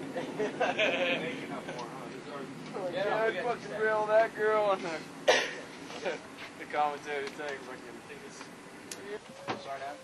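Young men shout and laugh close by.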